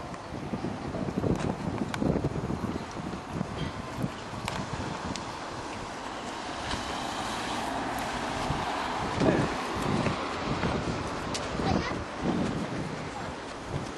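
Outdoors, wind rumbles across the microphone.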